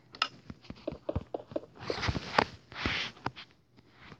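Stone blocks thud into place with short knocks, one after another.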